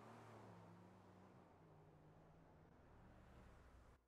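A dog howls softly.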